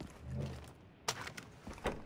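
A rifle clicks and rattles as it is handled.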